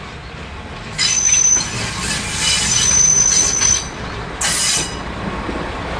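A railcar horn sounds loudly.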